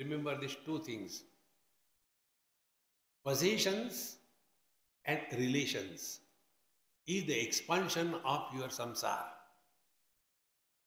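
An elderly man speaks calmly and earnestly into a nearby microphone, in short bursts with pauses.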